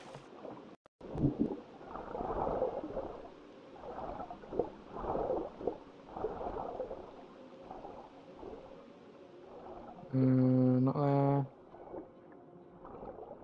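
Muffled bubbling and swirling water sound underwater as a swimmer dives.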